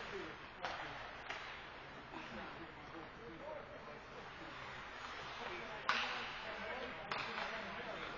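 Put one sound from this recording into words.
Hockey sticks and a puck knock sharply on the ice.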